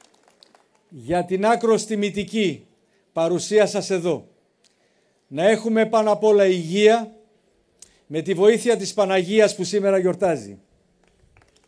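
A middle-aged man speaks with feeling into a microphone over loudspeakers.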